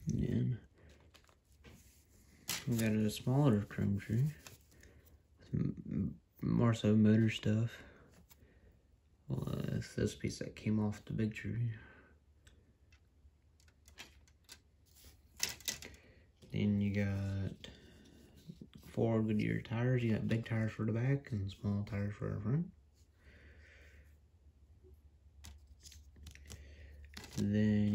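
Plastic model parts rattle and click as they are handled close by.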